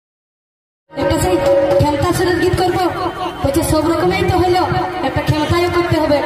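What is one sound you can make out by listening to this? A young woman sings loudly into a microphone.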